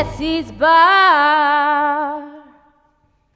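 A woman sings a long held note with vibrato.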